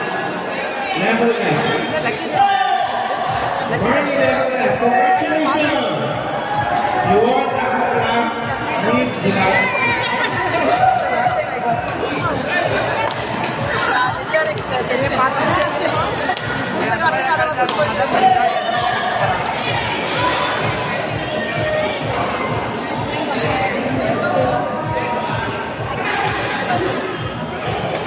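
Many voices chatter and call out in a large echoing hall.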